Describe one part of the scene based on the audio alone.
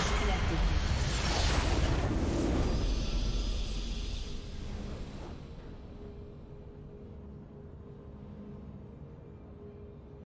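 A triumphant fanfare swells as a game ends.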